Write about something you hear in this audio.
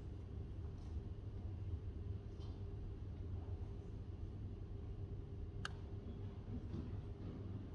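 Fingers tap softly on a laptop keyboard.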